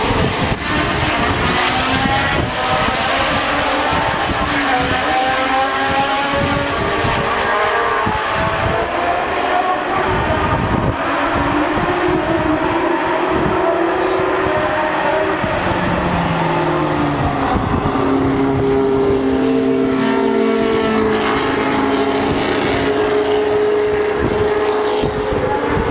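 Racing car engines roar loudly, rising and falling in pitch as the cars speed past and change gear.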